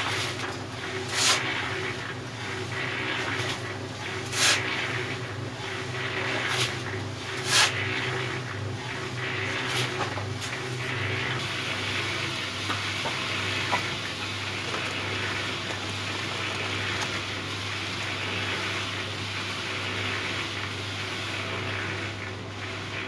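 A cement mixer drum rumbles steadily as it turns.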